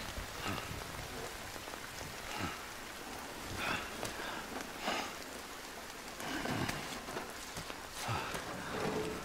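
A man groans and breathes hard up close.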